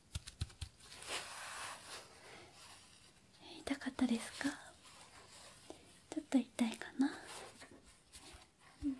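Gloved fingers rub against a soft towel with a gentle scratching hiss.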